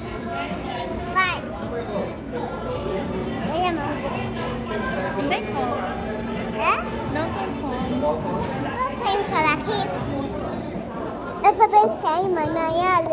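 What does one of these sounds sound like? A young child talks and giggles close by.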